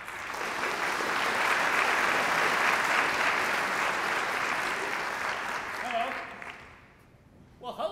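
An audience applauds in a large hall, then the applause fades.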